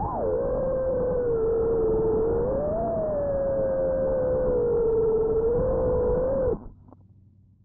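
Drone propellers whine steadily, wavering slightly in pitch.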